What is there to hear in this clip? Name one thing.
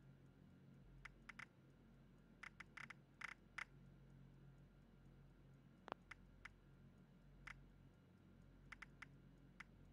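Short menu clicks tick as selections change.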